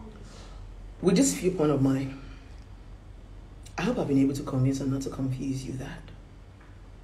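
A woman speaks close to a microphone in short, expressive bursts.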